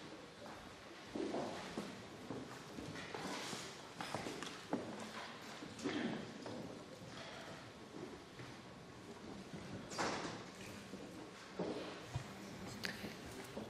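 People chatter quietly in a large echoing hall.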